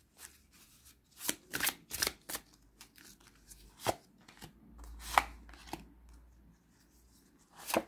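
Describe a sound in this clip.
Cards shuffle and slap together in a pair of hands.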